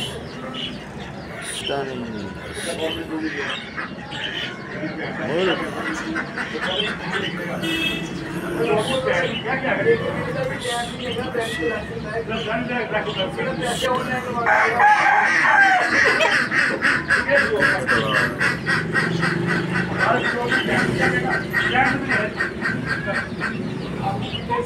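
A rooster clucks softly nearby.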